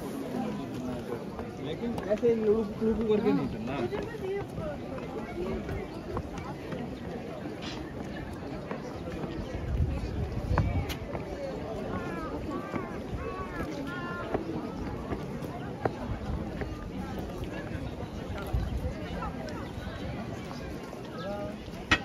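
Footsteps scuff on stone steps and paving.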